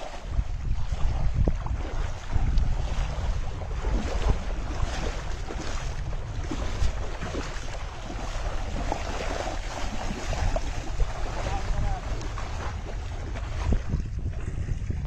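Water splashes as people wade through shallow water.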